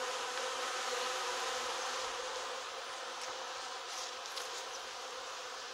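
Bees buzz steadily in a dense, droning swarm close by.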